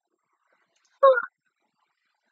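A young woman gives a short, bright laugh close by.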